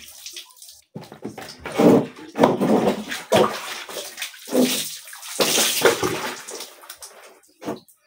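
Water is poured and splashes onto a hard floor.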